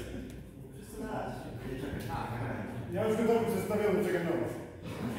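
A man talks with animation in a large echoing hall.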